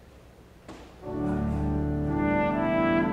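An organ starts playing a slow chord-filled melody in a large echoing hall.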